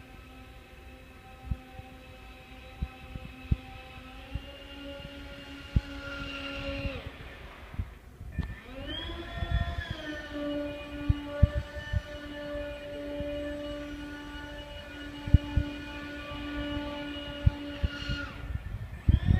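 A small toy vehicle's electric motor whines steadily, its pitch shifting as it speeds up and slows down.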